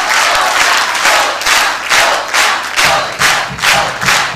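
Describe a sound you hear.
An audience claps in steady rhythm together.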